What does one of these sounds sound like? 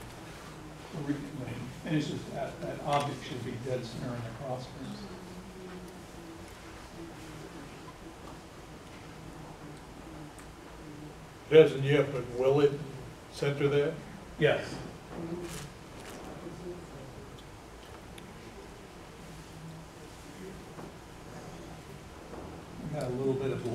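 A man speaks nearby in bursts, with long pauses.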